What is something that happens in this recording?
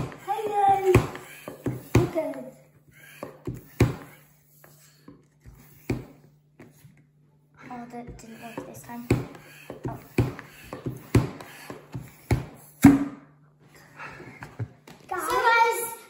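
A young boy talks and giggles close by.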